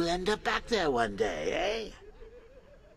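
A man speaks in a taunting voice.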